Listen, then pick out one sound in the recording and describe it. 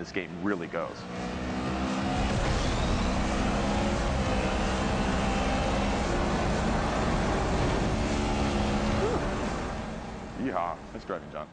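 A racing car engine roars steadily through loudspeakers.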